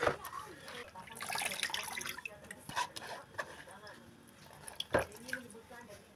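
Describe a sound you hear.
Hands squeeze wet grated coconut.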